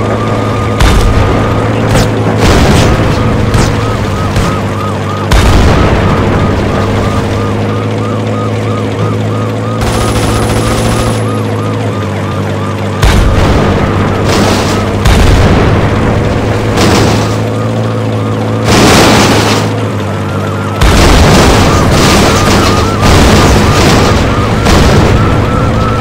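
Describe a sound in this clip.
Tank cannon shots boom loudly.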